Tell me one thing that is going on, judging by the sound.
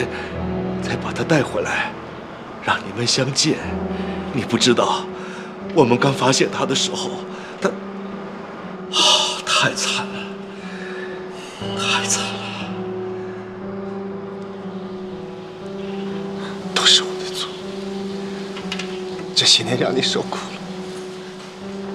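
A young man speaks close by in a trembling, pleading voice.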